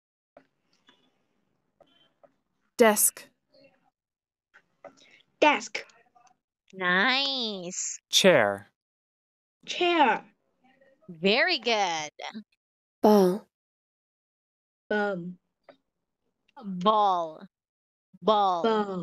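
A young boy repeats words over an online call.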